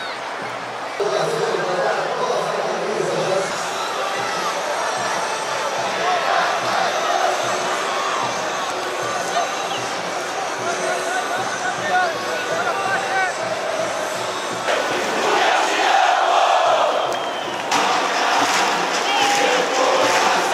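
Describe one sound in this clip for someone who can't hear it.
A large stadium crowd cheers and chants loudly.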